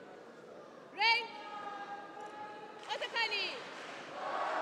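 A young woman lets out sharp, short shouts in a large echoing hall.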